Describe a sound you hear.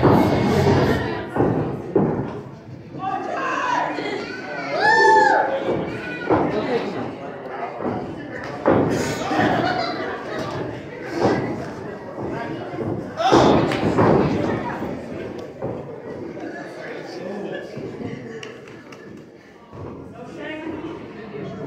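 A small crowd of men and women shouts and cheers in an echoing hall.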